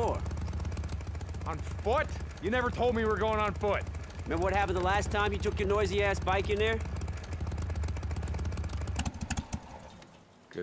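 Motorcycle engines idle with a low, steady rumble.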